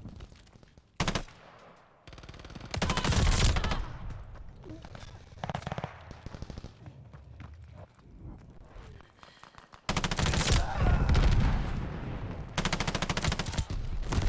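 Rapid automatic gunfire bursts loudly, in short and long bursts.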